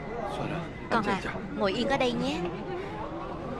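A young girl speaks quietly.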